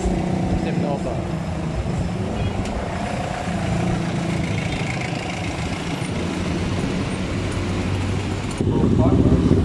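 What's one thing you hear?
Jeepney engines idle and rumble close by.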